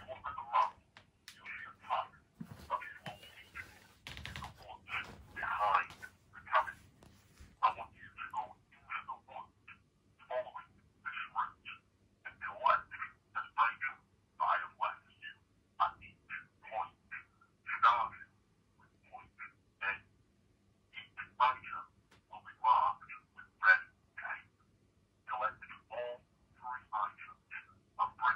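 A man talks on a phone close by, calmly and in short bursts.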